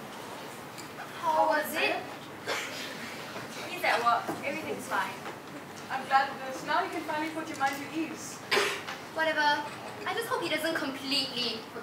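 Young women talk in a large echoing hall, heard from a distance.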